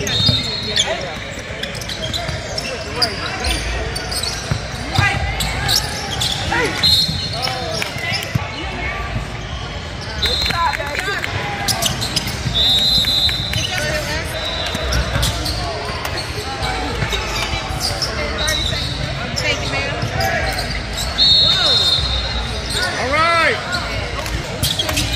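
A crowd murmurs and calls out in a large echoing gym.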